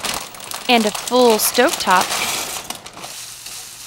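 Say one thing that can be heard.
Dry pasta rattles as it pours into a metal pot.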